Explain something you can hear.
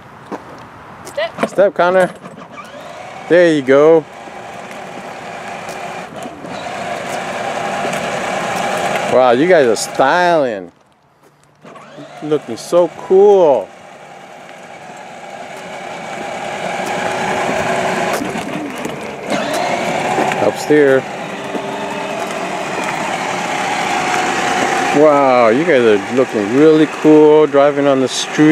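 An electric toy car's motor whirs steadily as it rolls on pavement.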